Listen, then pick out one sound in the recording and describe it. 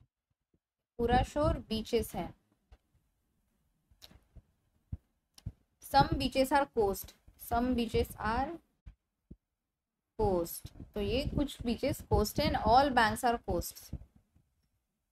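A young woman speaks calmly and explains into a close microphone, in short bursts with pauses.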